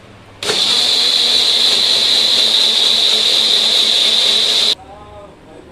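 A blender whirs loudly, churning a thick liquid.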